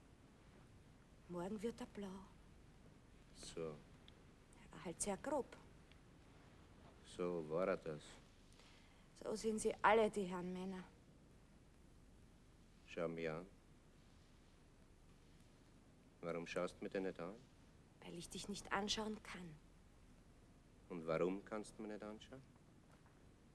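A young woman answers softly, close by.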